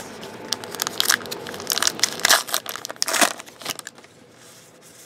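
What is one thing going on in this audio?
A foil wrapper crinkles and tears open close by.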